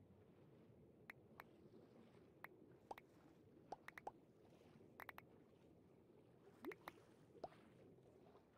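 Short pops of items being picked up sound in a video game.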